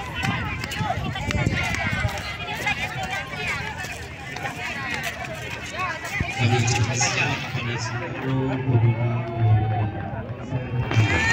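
A crowd of women and children chatters outdoors.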